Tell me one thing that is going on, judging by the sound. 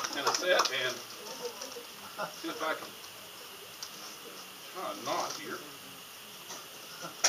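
An elderly man talks quietly into a microphone.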